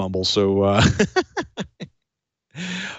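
A middle-aged man laughs into a close microphone.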